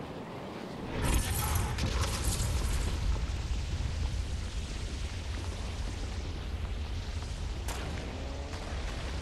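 A hoverboard hums with a steady low rumble.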